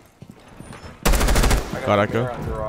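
A rifle fires a rapid burst of shots up close.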